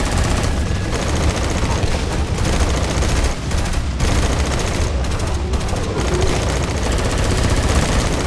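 Flamethrowers roar in bursts.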